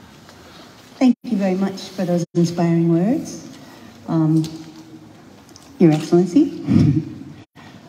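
A woman speaks slowly over a loudspeaker in an echoing hall.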